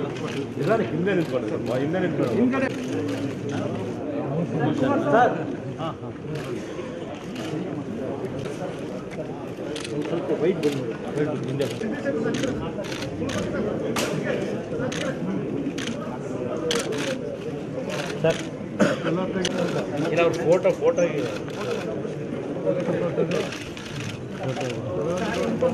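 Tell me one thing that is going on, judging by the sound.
Many men talk at once in a steady murmur of voices.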